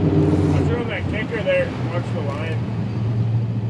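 A fishing reel whirs as line pulls out.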